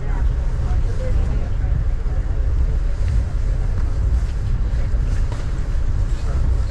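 A vehicle rumbles steadily as it travels along.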